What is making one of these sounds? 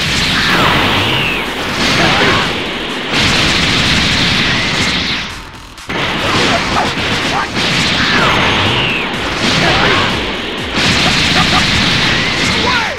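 Energy blasts whoosh and explode loudly.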